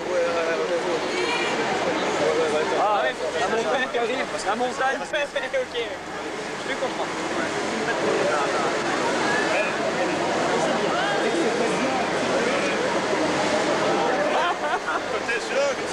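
A crowd of people chatter loudly all around in a large echoing hall.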